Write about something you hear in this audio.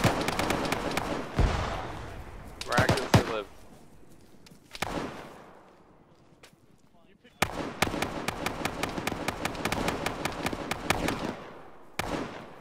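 A rifle fires rapid bursts of shots, echoing outdoors.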